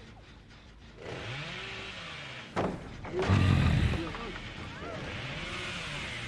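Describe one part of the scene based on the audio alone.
A chainsaw roars and revs loudly.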